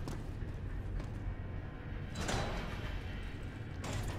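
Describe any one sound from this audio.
A heavy metal door scrapes open.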